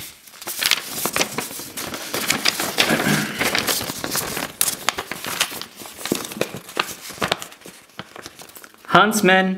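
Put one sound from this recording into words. Paper crinkles and rustles as it is unfolded and handled.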